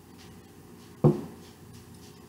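A glass is set down on a table with a knock.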